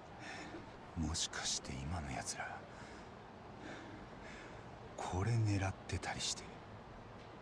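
A young man speaks calmly and questioningly, close by.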